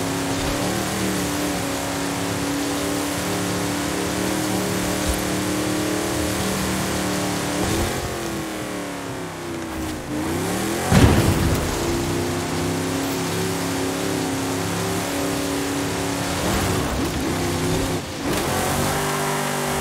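A car engine roars steadily, its pitch dropping and rising as gears shift.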